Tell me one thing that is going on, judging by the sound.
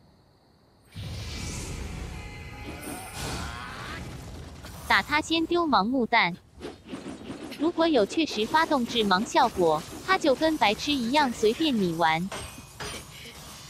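Blades swing and clash in a fight.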